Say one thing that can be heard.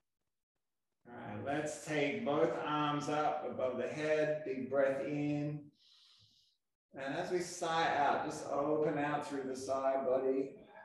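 A man speaks calmly, giving instructions.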